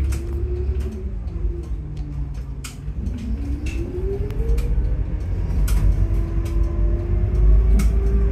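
A bus engine rumbles low and steadily, rising in pitch as the bus speeds up.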